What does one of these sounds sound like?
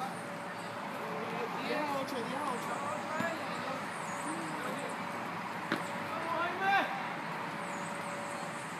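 Young men call out to each other during a game outdoors.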